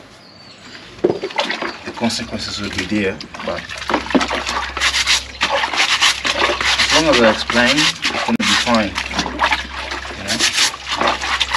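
Water splashes and sloshes in a basin as clothes are scrubbed.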